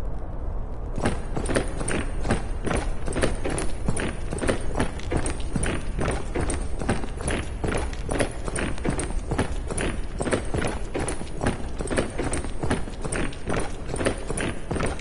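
Many soldiers march with heavy, rhythmic footsteps.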